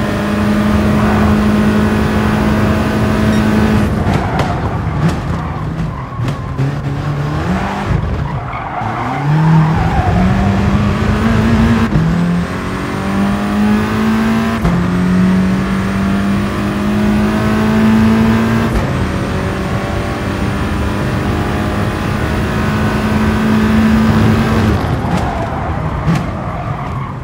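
A racing car engine roars, revving up and dropping back with each gear change.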